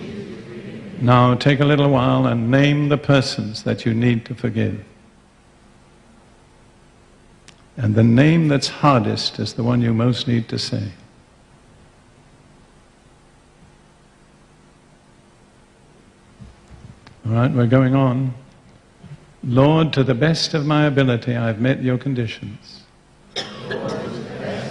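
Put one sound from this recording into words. An elderly man speaks through a microphone and loudspeakers in a large echoing hall, with long pauses.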